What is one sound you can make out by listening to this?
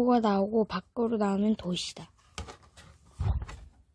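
Paper rustles as a page is turned.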